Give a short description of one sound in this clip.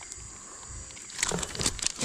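A fish thrashes in a net.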